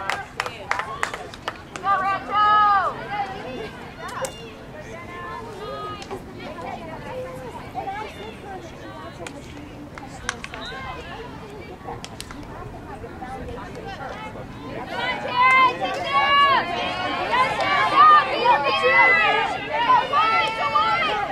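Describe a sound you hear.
Young women shout and call to one another across an open field, louder toward the end.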